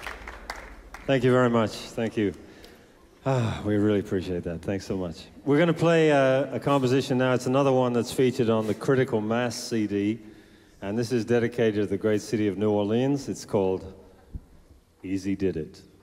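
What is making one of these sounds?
An older man speaks calmly into a microphone over a loudspeaker.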